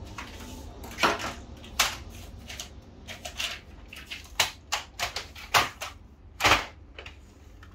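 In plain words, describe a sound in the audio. A plastic paper tray slides and clicks into a printer.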